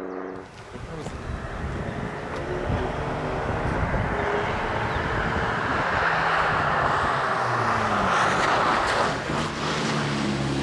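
Car tyres hiss on the road as a car speeds past.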